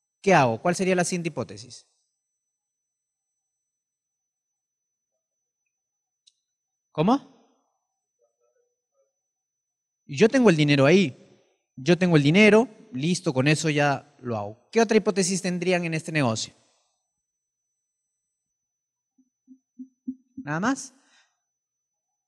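A man speaks with animation into a microphone, heard through loudspeakers, with pauses between phrases.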